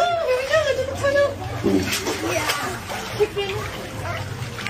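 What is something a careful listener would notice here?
A young woman speaks playfully, close by.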